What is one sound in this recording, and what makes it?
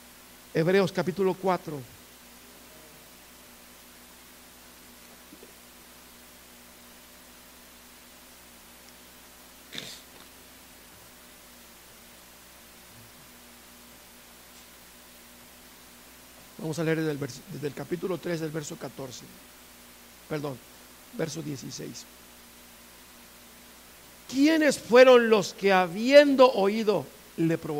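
A middle-aged man speaks with feeling through a microphone, in bursts with long pauses.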